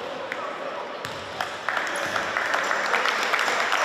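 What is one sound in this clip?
A basketball bounces on a wooden floor in an echoing hall.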